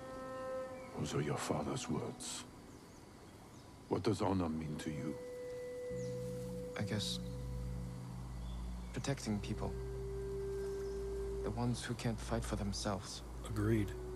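A man talks calmly, heard close through a microphone.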